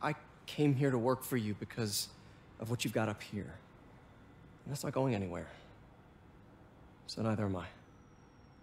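A young man speaks earnestly and calmly, close by.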